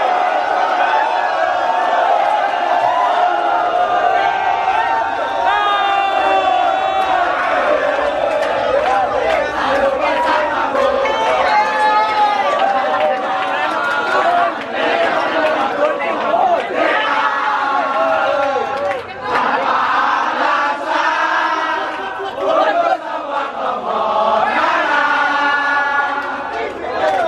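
A crowd of young men cheers and shouts excitedly.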